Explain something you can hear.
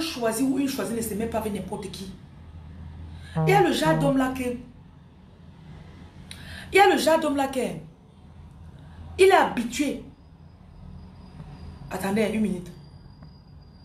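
A young woman speaks with feeling close to a microphone, in short bursts with pauses.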